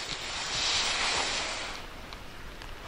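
A snowboard scrapes and hisses across snow.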